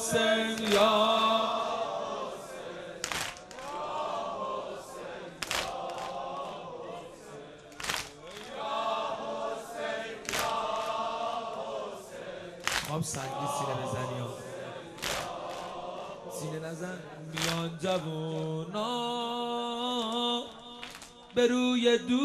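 A young man chants a mournful lament into a microphone, with echo.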